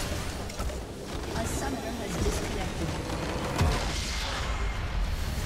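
Magical spell effects crackle and whoosh.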